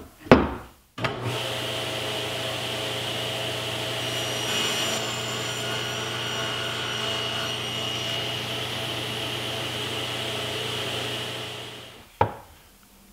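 A table saw hums steadily while running.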